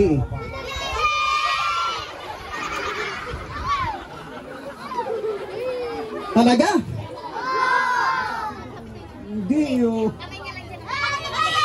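A crowd of children shout and chatter together.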